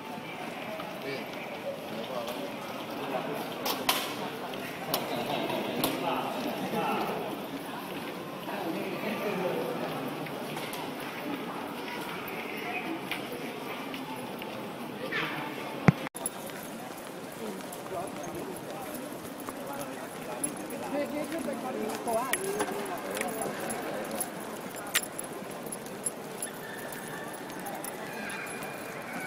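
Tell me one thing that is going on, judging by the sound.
A crowd of men talks and calls out all around in an echoing hall.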